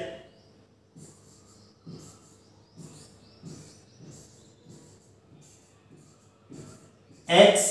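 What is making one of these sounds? A marker squeaks and taps as it writes on a board.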